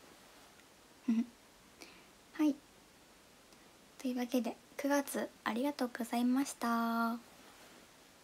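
A young woman speaks close to a microphone in short, animated bursts.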